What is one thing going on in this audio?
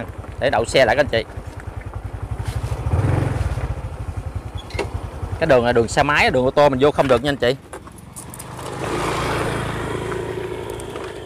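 A motorbike engine putters steadily up close.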